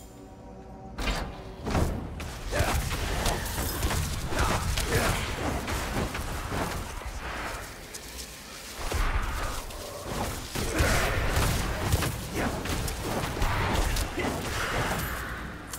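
Fiery blasts and clashing combat effects burst repeatedly.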